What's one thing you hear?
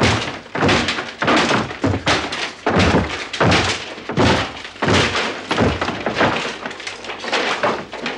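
Men scuffle and struggle, with rifles knocking together.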